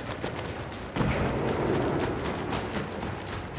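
A loud explosion bursts with a deep rumble.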